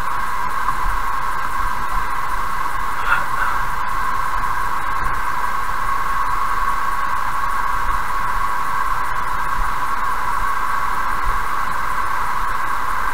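A car drives steadily along a highway, with tyres humming on the road.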